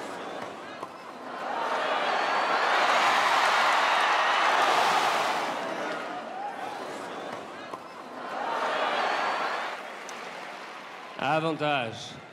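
A tennis ball is struck hard by a racket.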